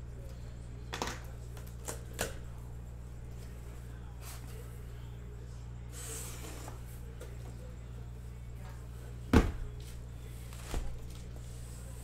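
Cardboard flaps rustle and thump as a box is handled.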